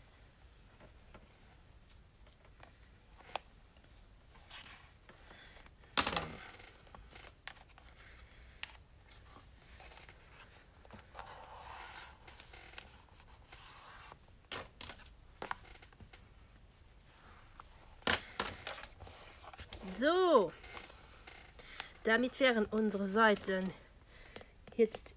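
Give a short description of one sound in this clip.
Paper pages rustle and flip close by.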